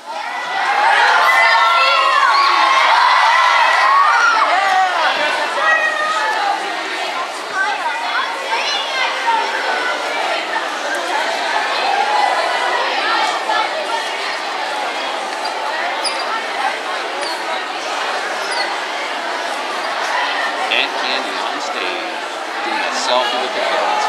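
A woman speaks with animation into a microphone in a large echoing hall.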